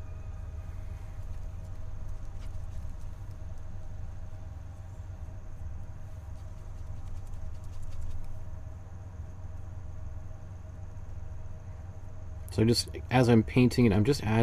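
A paintbrush softly brushes across a canvas.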